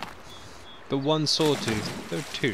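Water splashes loudly as something plunges in.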